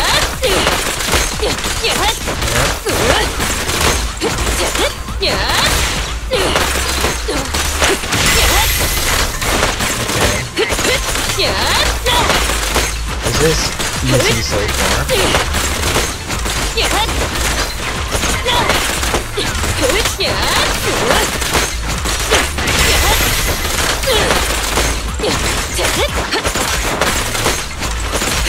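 Sword slashes and hits crackle rapidly in a fast game fight.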